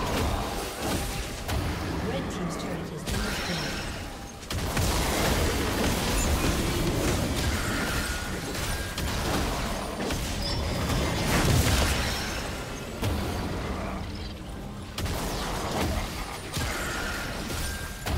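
Fantasy battle sound effects from a computer game whoosh, crackle and strike.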